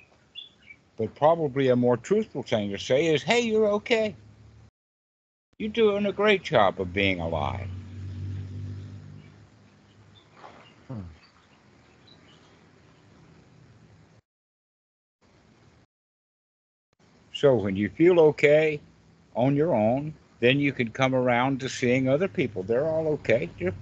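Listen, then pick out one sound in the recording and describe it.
An elderly man talks cheerfully over an online call.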